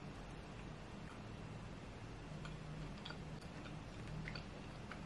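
A young woman chews food softly.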